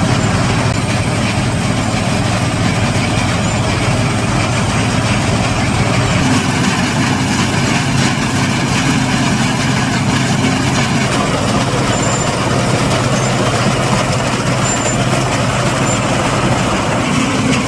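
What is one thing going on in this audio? A combine harvester engine drones steadily nearby.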